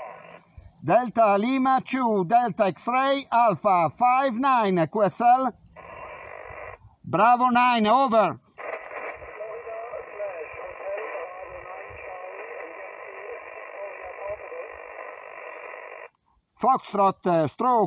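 A middle-aged man speaks clearly and close into a handheld radio microphone.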